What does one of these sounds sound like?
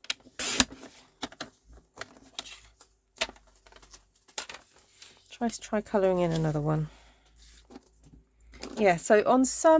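Card stock rustles and taps as it is handled.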